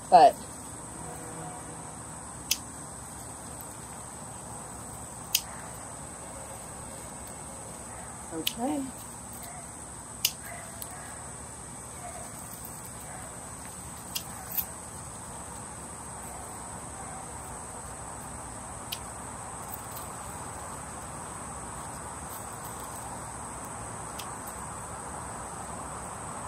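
Leaves rustle as stems are handled and pulled.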